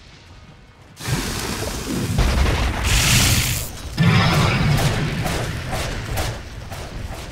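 Game spell effects blast and crackle in a fight.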